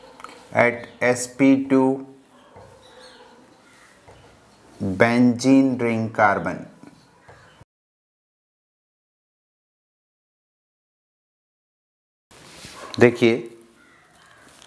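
A man speaks with animation into a close microphone, pausing between phrases.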